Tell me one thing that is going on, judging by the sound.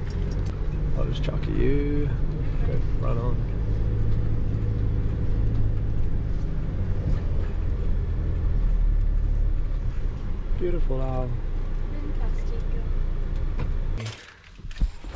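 A vehicle's engine rumbles steadily as it drives over sand.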